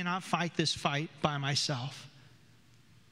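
A man speaks with animation through a microphone in an echoing room.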